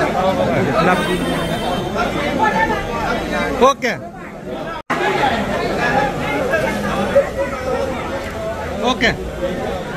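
Several men chat and greet one another nearby.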